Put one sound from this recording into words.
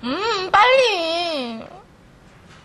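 A young woman speaks with animation in a high voice.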